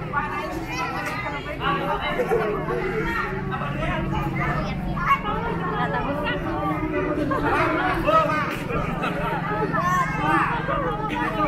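A crowd of men and women chatters and calls out outdoors.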